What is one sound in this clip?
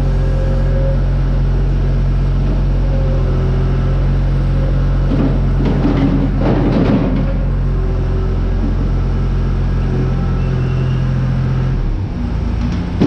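A skid steer loader's diesel engine runs loudly.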